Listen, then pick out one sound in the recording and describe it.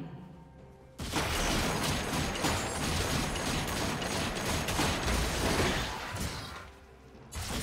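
Magic blasts and impacts crash loudly during a fight in a game.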